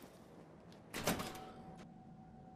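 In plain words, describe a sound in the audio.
A heavy metal door clanks open.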